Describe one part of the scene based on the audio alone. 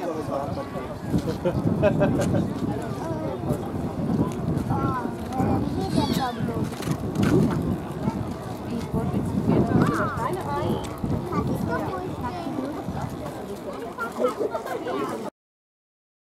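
Small model boat motors buzz across the water.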